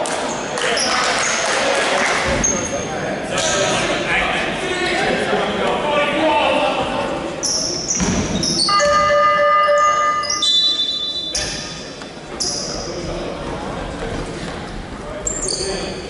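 Spectators murmur and call out nearby.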